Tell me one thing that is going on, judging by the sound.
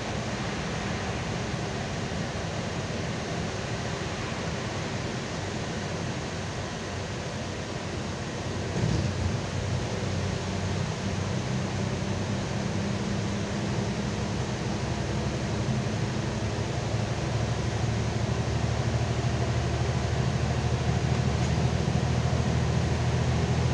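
A bus engine drones steadily from inside the cabin, growing louder after a while.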